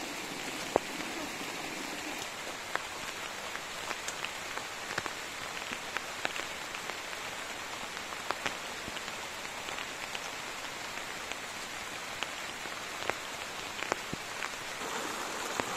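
Leaves and stalks rustle as a person pushes through plants.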